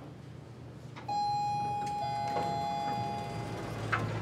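An elevator chimes.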